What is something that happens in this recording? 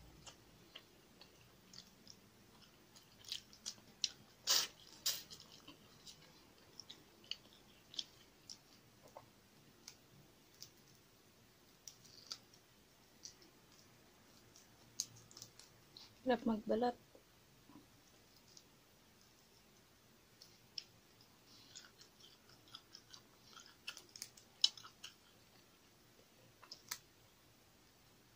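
A young woman chews food and smacks her lips close to a microphone.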